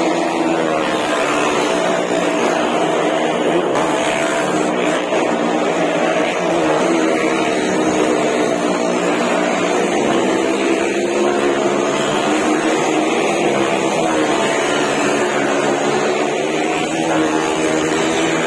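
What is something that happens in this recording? Engines roar loudly and steadily, echoing around a large wooden drum.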